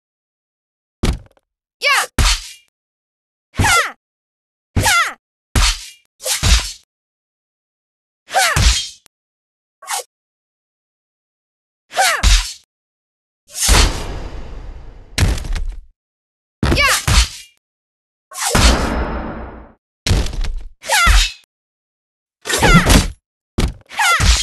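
Swords clash and swish in short, sharp bursts.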